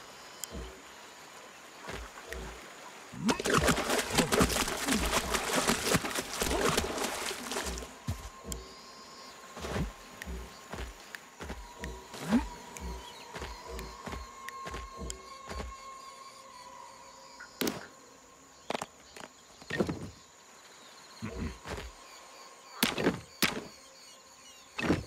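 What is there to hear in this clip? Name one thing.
Hands thud and scrape as they grip rock while climbing.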